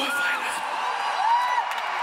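A large crowd cheers in a big open space.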